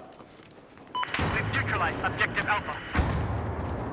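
A rifle fires in short bursts at close range.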